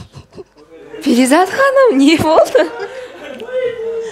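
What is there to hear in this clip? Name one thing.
A woman laughs loudly into a microphone.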